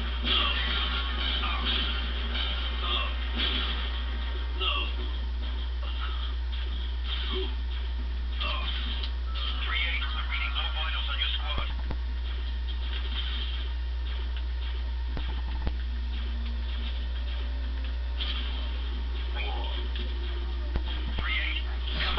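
Rapid gunfire crackles from a television speaker.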